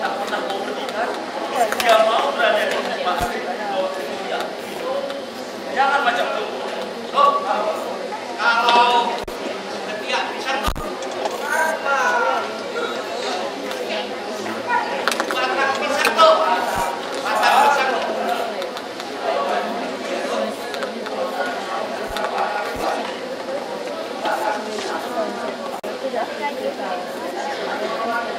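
An audience in a hall murmurs and laughs.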